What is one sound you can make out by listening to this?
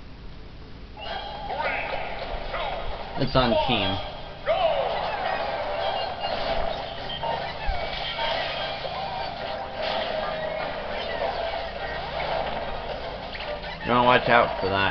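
Video game music plays with a lively beat.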